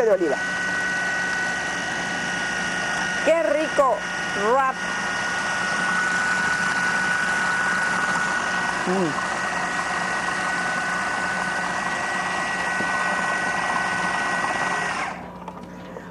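A food processor whirs loudly and steadily, then stops.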